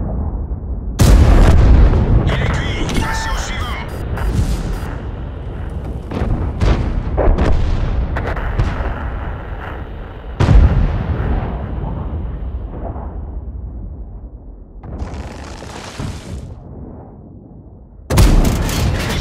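A tank cannon fires with loud booming blasts.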